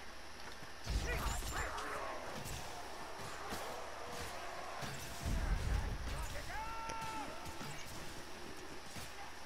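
A bow twangs as arrows are shot.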